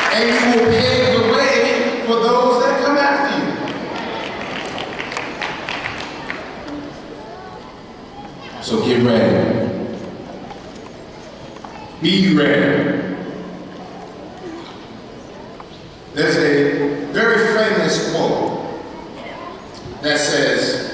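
A man speaks with animation into a microphone, heard over loudspeakers in a large echoing hall.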